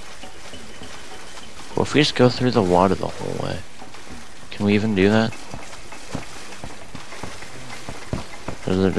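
Water splashes and sloshes steadily as someone wades through it.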